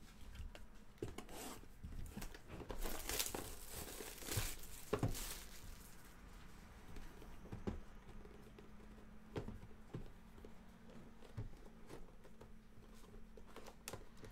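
Plastic wrap crinkles and tears as hands unwrap a box.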